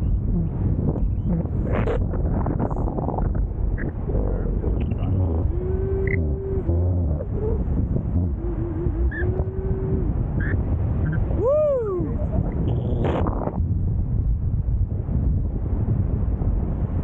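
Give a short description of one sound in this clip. Wind rushes and buffets past the microphone during flight.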